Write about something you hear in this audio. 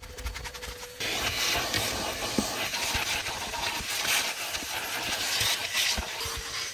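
A vacuum cleaner hums steadily as its nozzle sucks at carpet.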